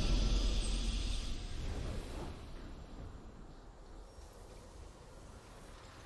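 A triumphant game fanfare booms and slowly fades.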